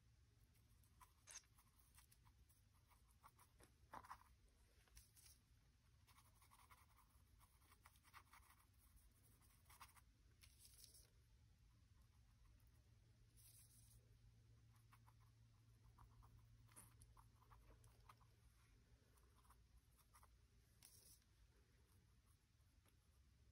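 A brush dabs and scrapes softly on textured paper.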